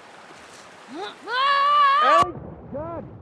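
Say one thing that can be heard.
A young girl lets out a loud shout.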